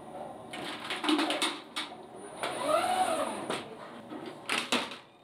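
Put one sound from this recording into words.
Mechanical parts click and clatter.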